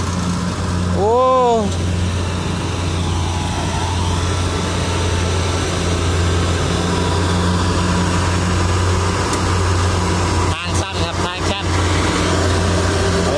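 Dry rice stalks crackle and rustle as a combine harvester cuts through them.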